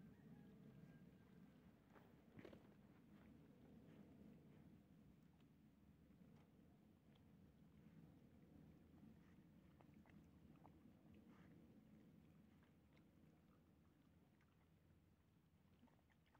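Paws scuffle on dirt.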